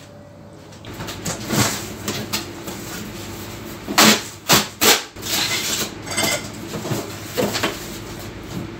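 Boxes and bottles clatter and knock as they are moved.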